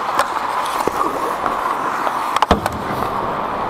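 Hockey sticks clack against a puck and against each other.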